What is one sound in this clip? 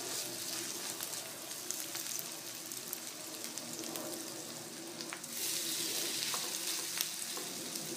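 A fork scrapes and taps against a frying pan.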